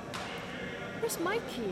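Sneakers squeak sharply on the gym floor.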